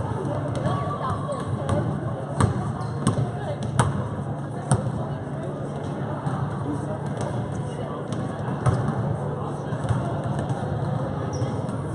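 A basketball bounces on a hard floor in a large echoing gym.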